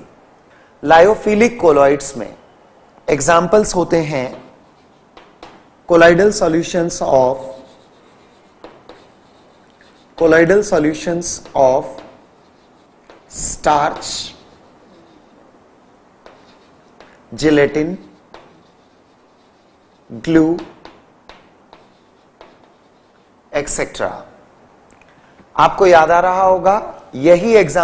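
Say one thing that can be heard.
A man speaks clearly into a microphone, in short phrases with pauses, as if explaining.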